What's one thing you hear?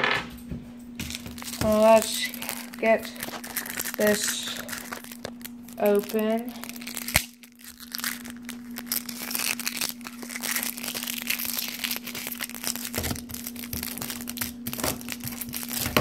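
Playing cards in plastic sleeves rustle and crinkle as they are handled.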